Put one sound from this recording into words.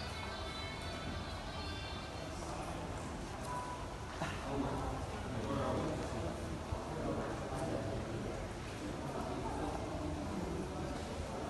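Men talk in a murmur across a large echoing hall.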